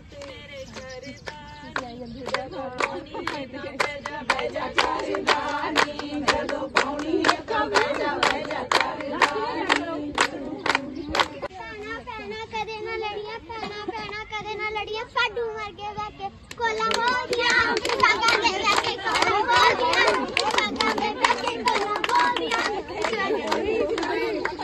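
A group of women clap their hands in a steady rhythm.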